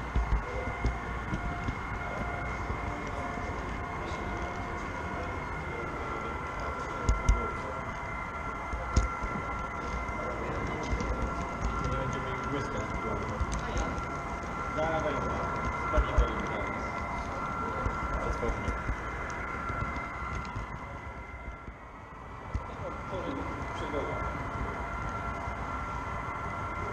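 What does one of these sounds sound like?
Model train wheels rumble and click over the rails.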